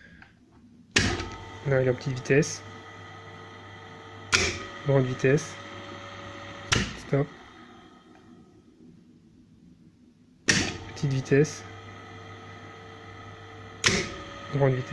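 Electrical switches click sharply.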